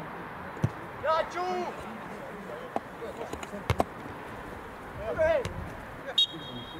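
Players shout loudly to each other across an open field outdoors.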